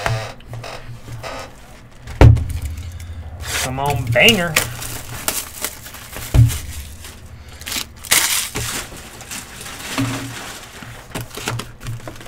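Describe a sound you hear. A cardboard box scrapes and knocks on a table.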